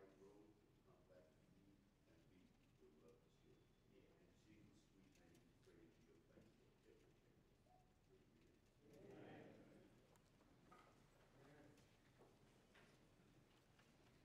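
A man preaches through a microphone in an echoing hall, speaking with feeling.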